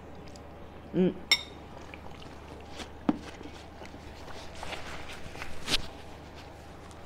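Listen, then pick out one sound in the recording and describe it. A woman slurps and chews noodles close up.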